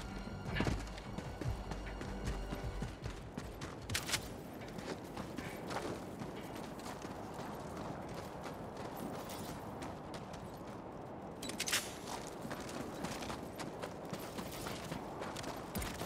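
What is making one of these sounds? Heavy footsteps crunch on rocky ground.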